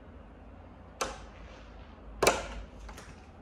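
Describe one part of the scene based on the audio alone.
A door latch clicks and clunks as a key turns.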